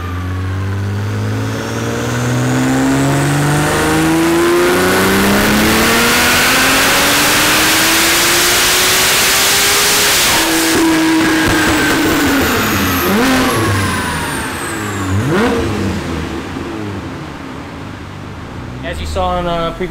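A car engine roars at full throttle, its pitch rising, then drops back and fades.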